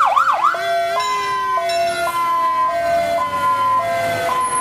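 A fire engine horn sounds in short repeated blasts.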